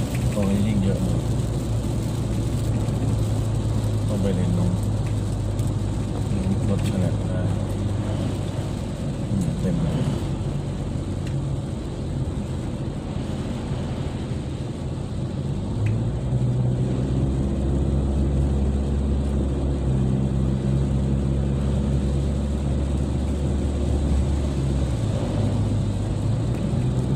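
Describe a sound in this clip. Tyres hiss on the wet road.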